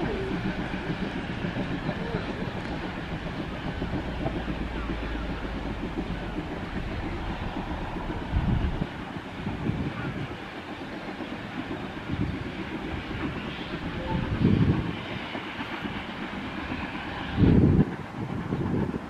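Wind gusts across the microphone outdoors, with low rumbling bursts.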